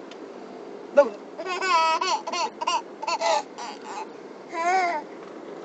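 A toddler squeals and babbles loudly close by.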